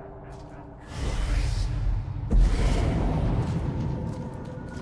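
A blade swings and strikes with a loud rushing whoosh.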